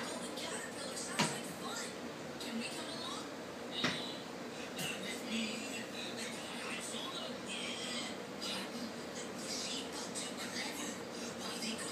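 A broom brushes and scrapes across a tile floor.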